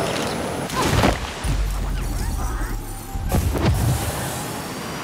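A heavy crash booms against rock.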